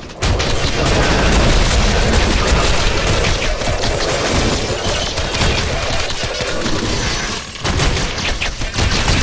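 Weapons clash and blast rapidly in a fierce fight.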